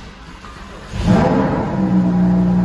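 A sports car engine starts with a loud roar.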